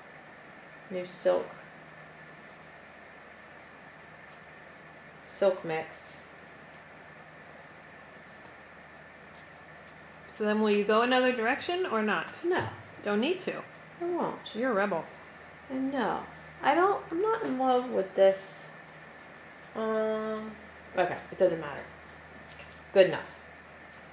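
A woman speaks calmly close by, explaining.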